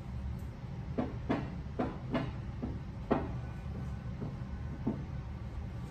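Objects knock and clatter against a wooden table.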